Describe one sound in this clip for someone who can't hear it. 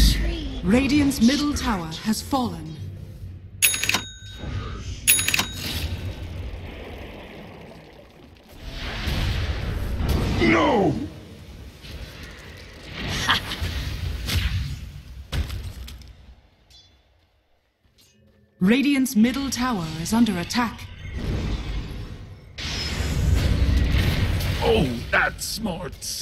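Magic spells crackle and blast during a fight in a video game.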